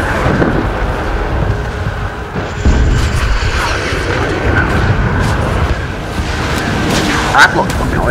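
Missiles whoosh past.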